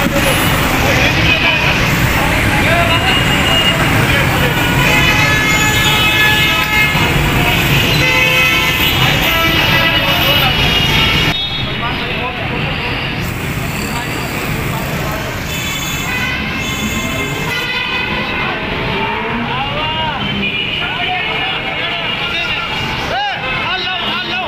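A crowd of men chatter loudly nearby.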